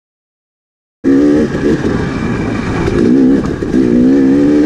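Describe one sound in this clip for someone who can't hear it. A dirt bike engine revs and drones up close.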